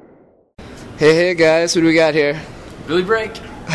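A young man speaks casually, close by.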